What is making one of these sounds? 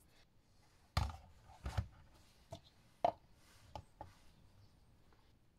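A glass bowl knocks onto a plastic scale.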